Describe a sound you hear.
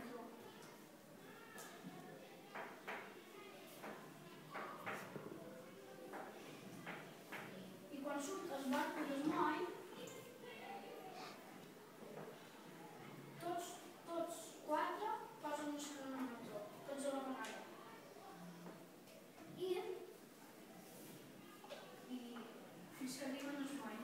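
A boy speaks nearby in a small room.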